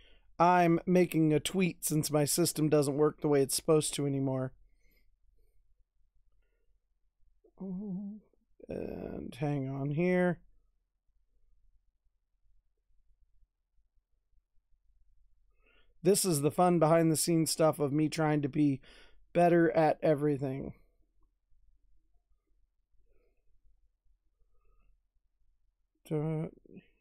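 A man talks calmly and closely into a microphone, in bursts with pauses.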